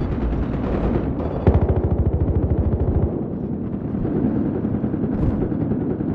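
Gunshots crack and echo down a hard corridor.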